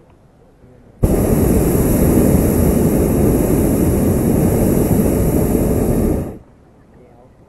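A hot air balloon burner roars loudly and then cuts off.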